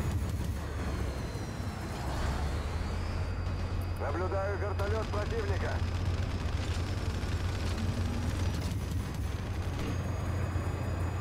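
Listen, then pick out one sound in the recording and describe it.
A helicopter's rotors and engine drone steadily.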